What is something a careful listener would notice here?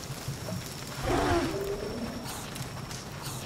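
A cartoon creature gives a short, throaty, wobbling cry.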